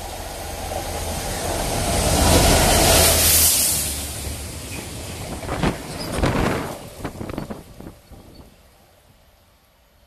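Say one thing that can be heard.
A freight train of tank wagons rushes past at speed, roaring and fading.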